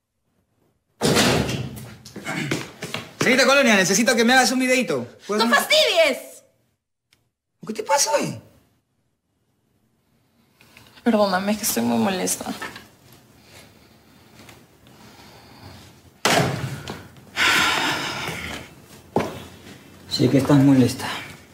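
A young woman speaks quietly and earnestly, close by.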